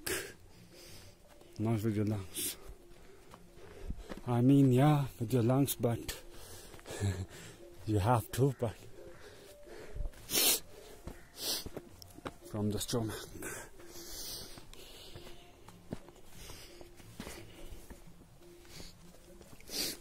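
Clothing rustles against a close microphone.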